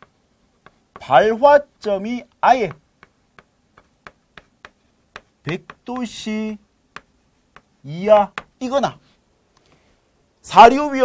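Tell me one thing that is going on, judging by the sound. A man speaks in short bursts, close to a microphone, like a teacher explaining.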